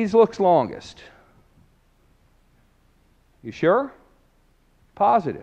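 A man speaks in short, lively bursts with pauses.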